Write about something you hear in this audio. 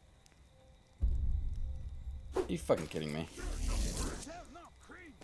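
Game sound effects rumble and crackle.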